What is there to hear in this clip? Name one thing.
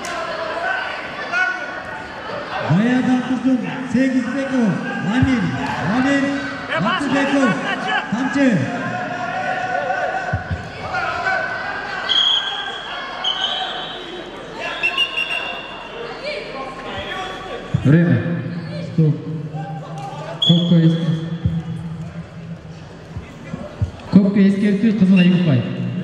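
Men shout loudly from the sidelines in an echoing hall.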